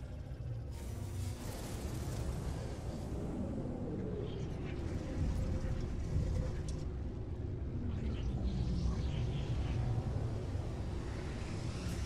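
A spacecraft engine whooshes and slows down as it comes in to land.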